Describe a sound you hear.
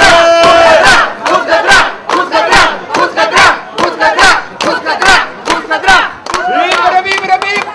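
People clap their hands to a beat.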